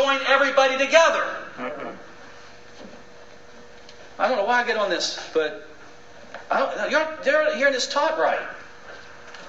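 A middle-aged man lectures with animation through a small microphone, pausing between phrases.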